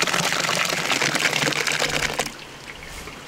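Thick liquid pulp pours and splashes into a basin.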